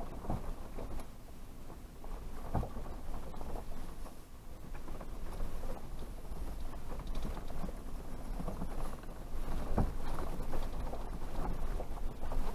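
A vehicle engine rumbles low and steady while driving slowly.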